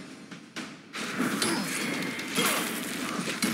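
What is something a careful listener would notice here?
A magic spell bursts with a loud whoosh.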